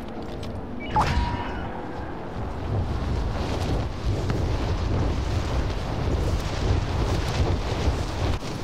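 Wind rushes loudly during a fast fall.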